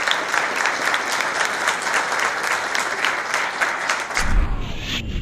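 A large audience claps steadily in a room.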